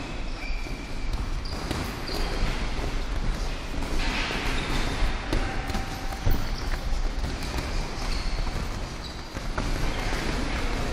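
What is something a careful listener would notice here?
Feet shuffle and squeak on a padded floor.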